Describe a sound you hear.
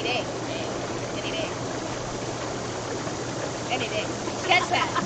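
Young women talk and laugh close by, outdoors.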